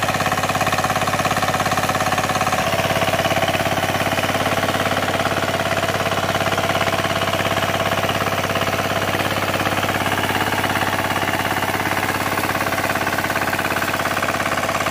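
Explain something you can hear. Tiller blades churn and scrape through dry, stony soil.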